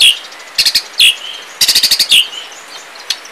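Birds call in harsh, sharp bursts close by.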